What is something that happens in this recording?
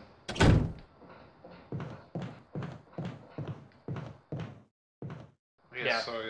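Footsteps thud slowly and evenly on a wooden floor.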